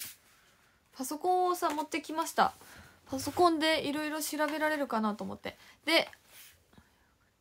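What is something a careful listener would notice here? A young woman speaks animatedly close to a microphone.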